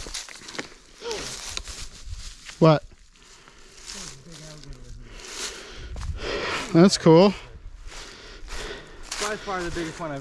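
A young man talks excitedly nearby.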